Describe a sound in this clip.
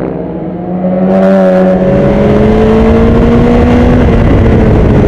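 A motorcycle engine drones steadily up close as it rides along a road.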